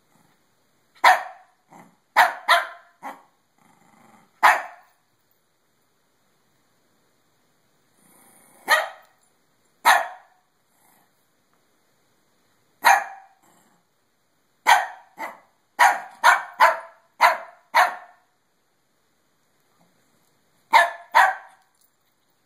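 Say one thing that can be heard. A small dog barks sharply in short bursts close by.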